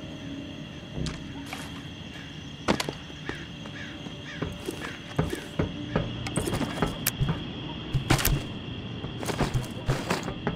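Hands knock and clatter against hard objects close by.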